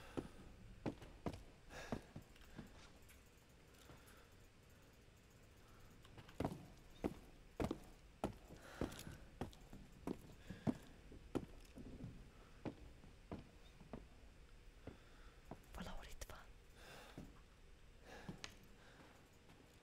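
Footsteps tread steadily across a wooden floor.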